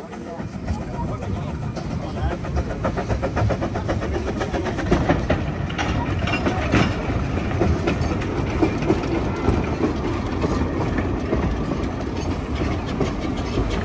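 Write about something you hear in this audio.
Metal wheels rumble and clank over the rails.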